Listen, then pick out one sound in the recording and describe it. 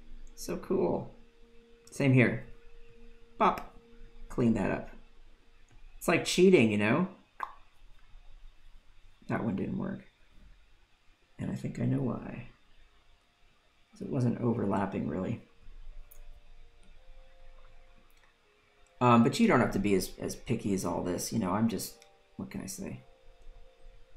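A man talks calmly and with animation into a close microphone.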